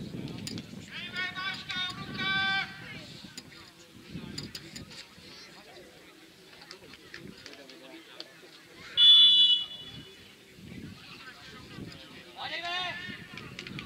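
Men shout to each other in the distance across an open field.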